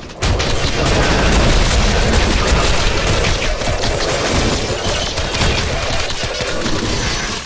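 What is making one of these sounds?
Magic explosions boom and crackle.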